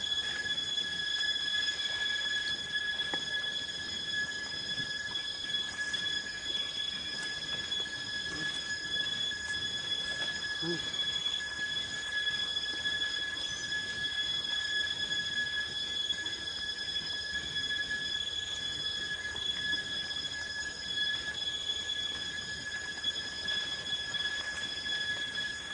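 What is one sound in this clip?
A monkey chews on a leaf close by.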